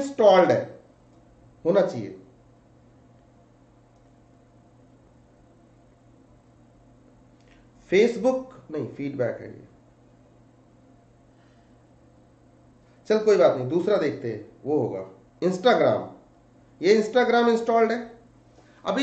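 A man speaks calmly into a nearby microphone, in short bursts with pauses.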